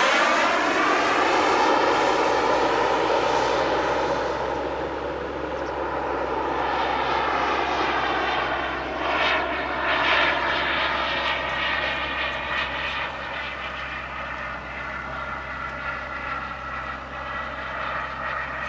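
A jet engine roars loudly overhead, its pitch sweeping as the jet passes and banks away.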